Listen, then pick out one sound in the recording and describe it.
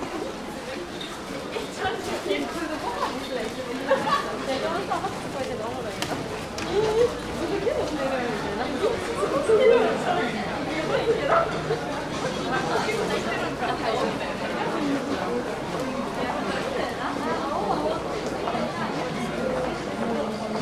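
A crowd of people chatter in an echoing underground passage.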